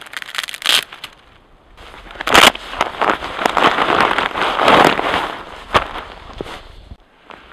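Dry twigs rustle and crackle in a man's hands.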